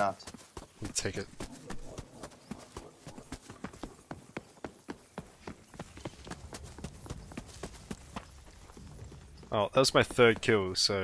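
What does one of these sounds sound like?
Footsteps patter quickly and steadily over the ground.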